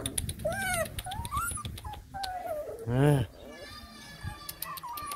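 Puppies whimper and yelp in high, wavering cries close by.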